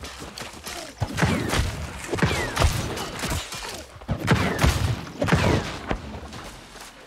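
Magic spells strike with sharp whooshing bursts.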